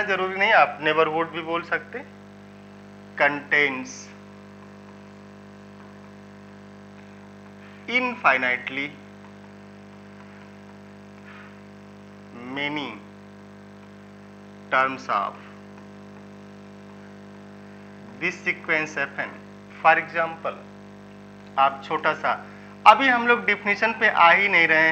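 A man speaks calmly and clearly into a close microphone, with pauses.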